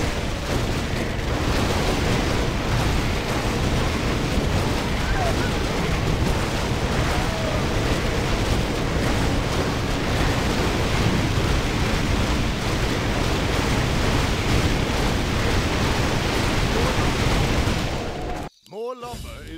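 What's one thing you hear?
Swords clash and spells burst in a dense, noisy battle.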